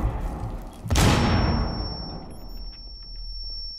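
A grenade explodes nearby with a loud boom.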